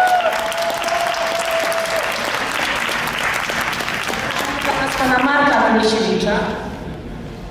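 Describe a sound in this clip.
Hands clap in lively applause.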